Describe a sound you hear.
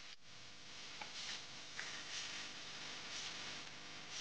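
Spatulas tap and knock softly as food is set down.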